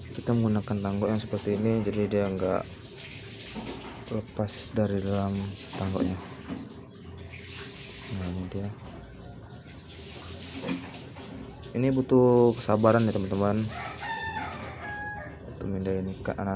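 Water splashes and drips as a net scoops through a tub.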